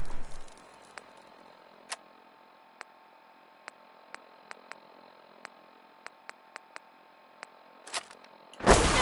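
Menu clicks tick softly one after another.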